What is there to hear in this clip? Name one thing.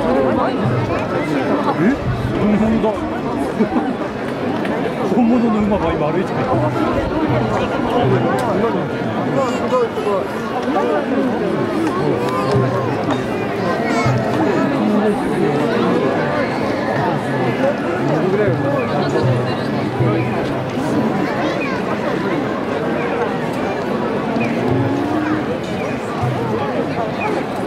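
A large crowd of men and women chatters and murmurs all around, outdoors.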